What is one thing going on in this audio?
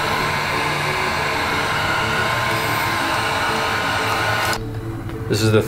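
A heat gun blows hot air with a steady roar.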